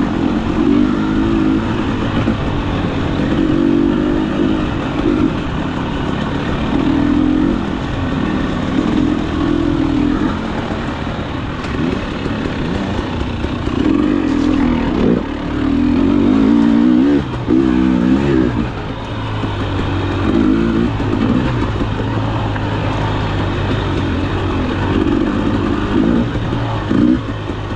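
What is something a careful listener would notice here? A dirt bike engine revs and putters up close, rising and falling as it rides.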